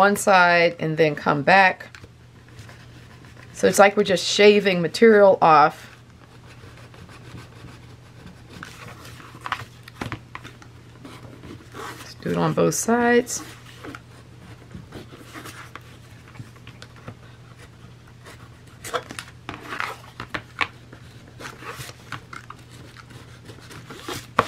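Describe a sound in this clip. A craft knife scrapes and trims the edge of thick card in short strokes.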